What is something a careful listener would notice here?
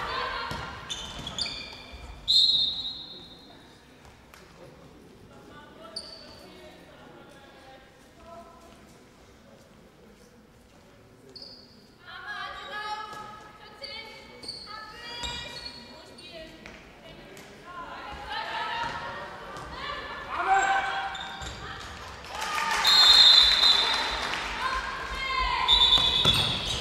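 A handball bounces on a hard floor in an echoing hall.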